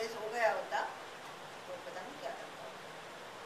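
An elderly woman speaks calmly, close by.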